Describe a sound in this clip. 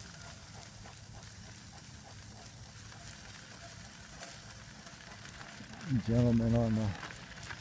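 A dog's paws patter steadily on a gravel road.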